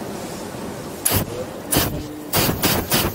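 A gas burner roars in loud, short bursts close by.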